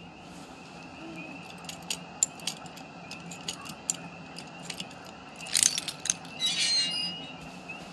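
A metal padlock and chain rattle and clink.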